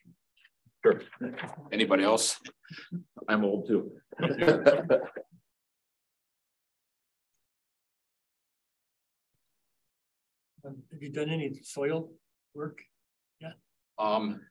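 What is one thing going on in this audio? A man speaks calmly through a meeting microphone, with silent pauses.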